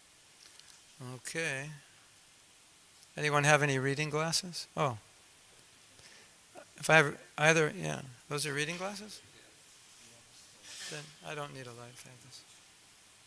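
A man speaks calmly into a microphone, with pauses.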